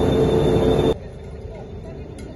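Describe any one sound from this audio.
Water flows through an outdoor channel.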